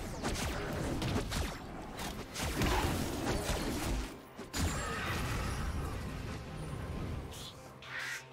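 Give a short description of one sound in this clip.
Video game combat effects whoosh, clash and burst.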